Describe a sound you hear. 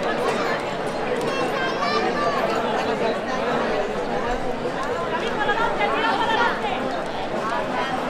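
Men and women in the crowd call out and cheer loudly.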